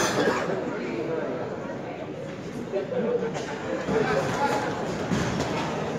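A crowd of spectators murmurs and cheers in an echoing hall.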